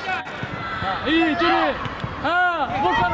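Young boys shout loudly across an open outdoor pitch.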